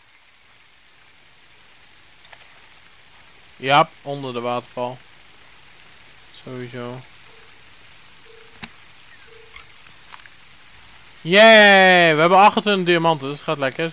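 A waterfall rushes and splashes nearby.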